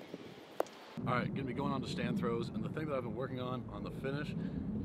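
A man speaks calmly and clearly, close by, outdoors.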